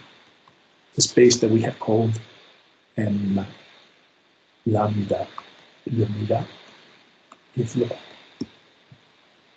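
A man speaks calmly through a microphone, in short phrases with pauses.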